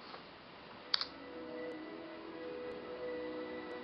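A tablet plays a soft startup tune through its small speaker.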